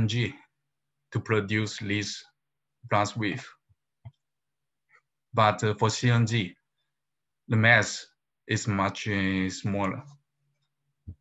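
A young man speaks calmly into a microphone, as if over an online call.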